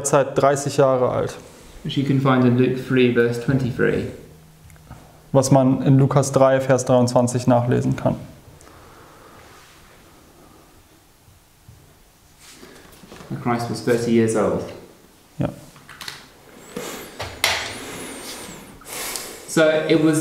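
A young man speaks calmly and clearly close by.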